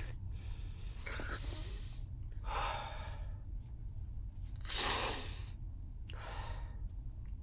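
A young man breathes heavily into his hands.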